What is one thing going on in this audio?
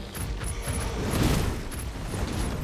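A heavy blade swings and slashes with a whoosh.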